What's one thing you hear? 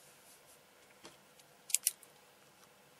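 A pen taps and clicks close by.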